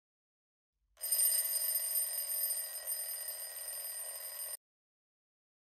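A phone alarm rings with a steady, bright tone.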